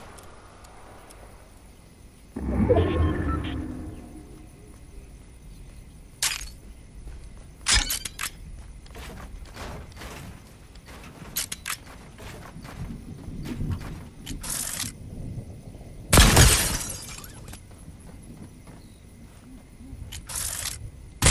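Building pieces snap into place with quick clacks.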